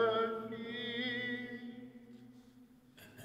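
An older man chants through a microphone.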